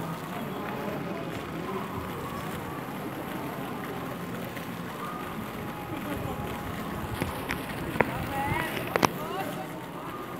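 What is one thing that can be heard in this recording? A crowd of people chatters outdoors in the distance.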